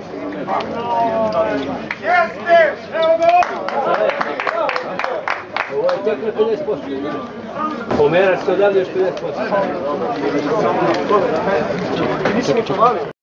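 Several men shout and talk loudly outdoors.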